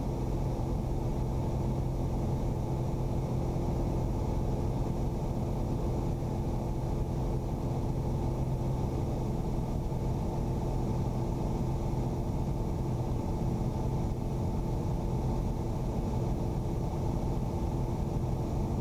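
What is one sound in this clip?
Wind rushes past the aircraft.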